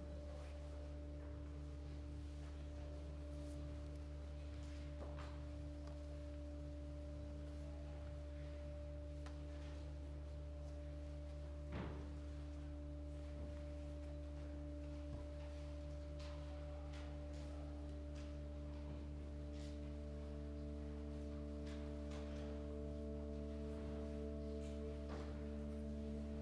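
Electronic keyboard tones drone steadily through a loudspeaker in a room.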